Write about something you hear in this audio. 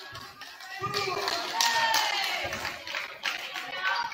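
A volleyball is hit with dull thumps.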